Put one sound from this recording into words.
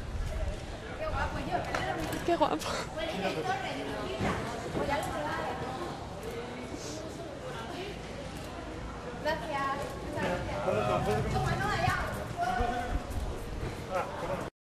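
Luggage wheels roll on pavement.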